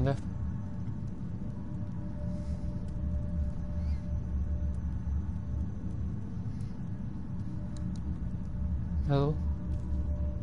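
A young man speaks briefly and casually into a microphone.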